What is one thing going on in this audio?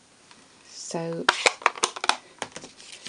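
An ink pad taps against paper several times.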